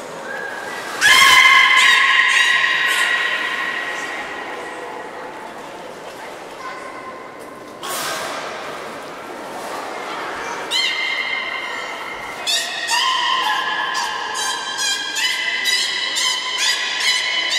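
A beluga whale whistles and chirps in shrill, squeaky bursts.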